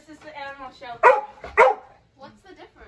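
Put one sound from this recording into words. A dog barks loudly indoors twice.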